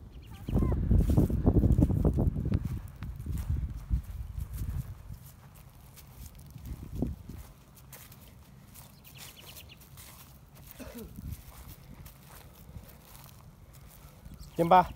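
A young child's footsteps crunch on dry grass.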